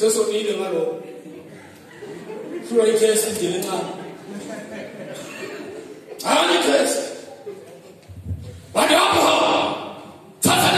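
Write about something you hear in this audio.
A man preaches loudly and with passion through a microphone and loudspeakers in a large echoing hall.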